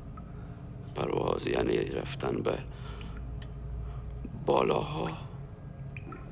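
A middle-aged man speaks quietly and wearily nearby.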